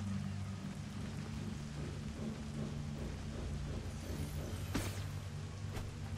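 A steady low musical drone plays.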